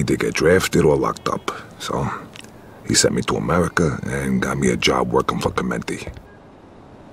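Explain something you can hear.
A young man speaks calmly in a low voice.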